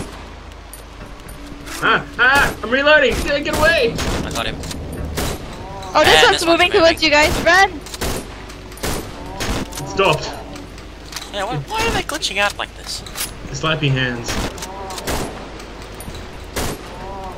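A pistol fires in sharp, repeated shots.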